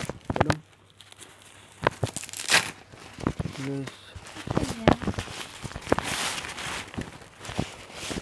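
Plastic crinkles and rustles as it is handled.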